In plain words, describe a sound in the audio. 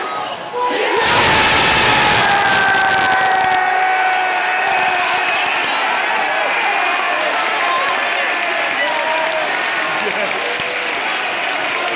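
A stadium crowd suddenly erupts into loud cheering and roaring.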